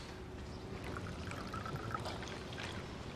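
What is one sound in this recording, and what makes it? Tea trickles into a cup.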